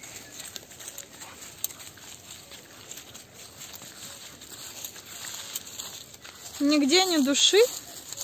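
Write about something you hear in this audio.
Dogs run through rustling grass.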